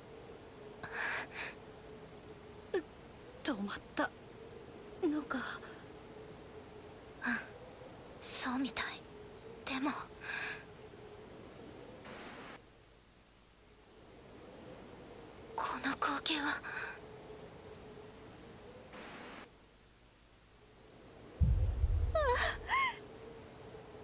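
A young woman speaks softly in short phrases.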